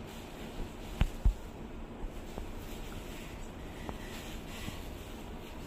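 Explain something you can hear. Fabric rustles as cloth is handled and laid down.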